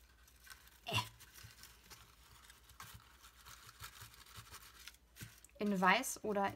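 Shredded paper crinkles and rustles as hands press it down.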